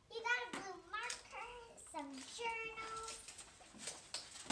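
A young girl talks with excitement nearby.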